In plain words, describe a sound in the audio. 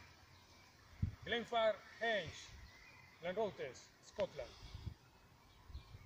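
A man speaks calmly outdoors, a short distance away.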